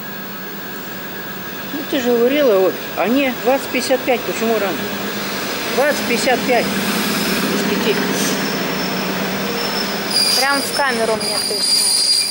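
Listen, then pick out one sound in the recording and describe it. An electric train rolls in, rumbling and squealing on the rails.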